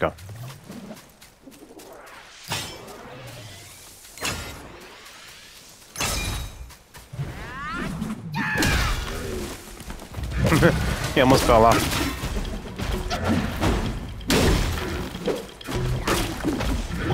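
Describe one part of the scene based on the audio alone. A staff whooshes and strikes in quick swings.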